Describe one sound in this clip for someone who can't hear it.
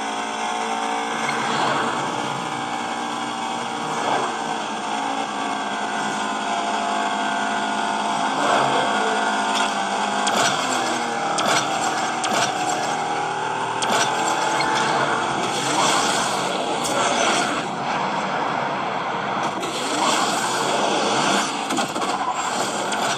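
A racing game's engine roars steadily through a loudspeaker.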